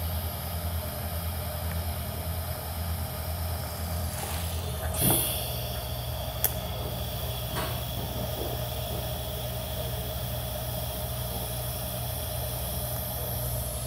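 A welding torch hums and buzzes steadily.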